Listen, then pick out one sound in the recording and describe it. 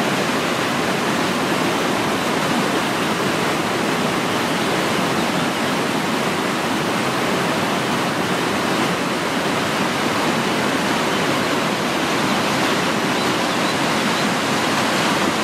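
A waterfall roars as it cascades over rocks close by.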